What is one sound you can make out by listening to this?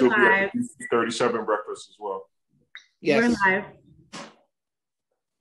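A middle-aged man speaks with a deep voice over an online call.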